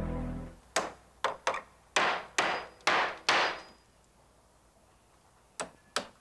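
A hammer strikes wood in sharp, ringing blows.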